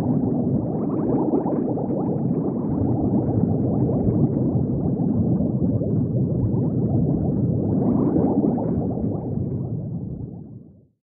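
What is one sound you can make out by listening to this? Water bubbles and gurgles steadily, fading out at the end.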